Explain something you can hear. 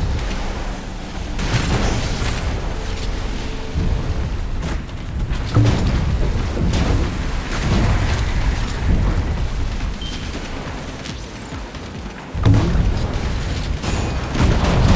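A boat engine hums steadily as a speedboat races across water.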